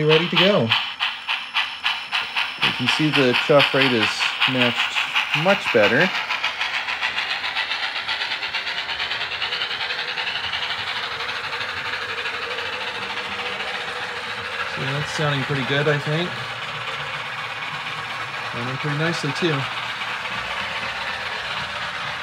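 A model steam locomotive chuffs rhythmically, then fades into a steady hum as it rolls away.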